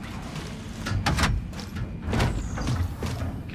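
A heavy metal door unlocks with a clunk and slides open.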